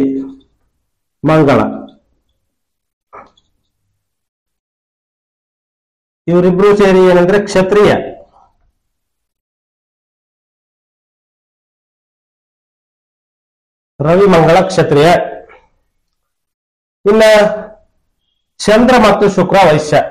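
A man speaks calmly and clearly close by, in short phrases with pauses.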